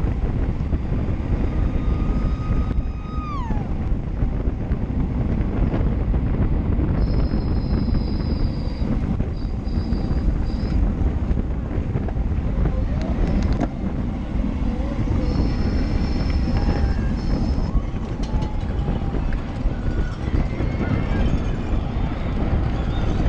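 Bicycle tyres hum on the road.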